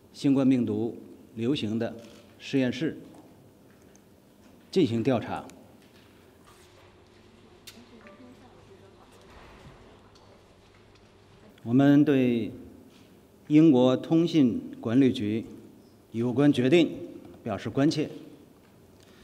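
A man speaks calmly and formally into a microphone, in short phrases with pauses.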